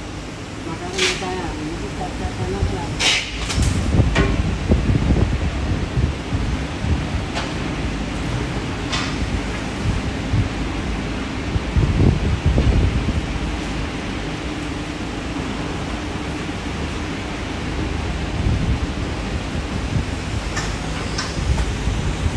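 Metal parts clink and knock.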